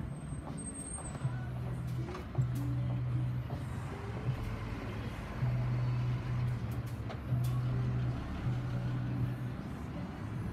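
A bus engine hums as it passes on a street.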